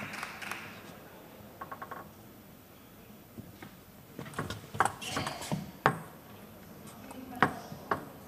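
A table tennis ball clicks back and forth off paddles and the table in a quick rally.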